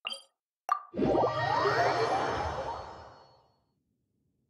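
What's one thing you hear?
A swelling whoosh rises and fades away.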